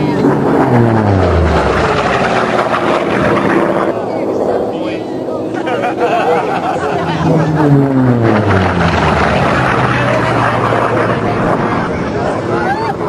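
A propeller plane's engine roars past overhead, its pitch dropping as it goes by.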